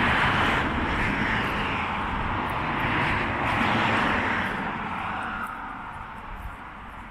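Wind rushes steadily through pine trees outdoors, easing off toward the end.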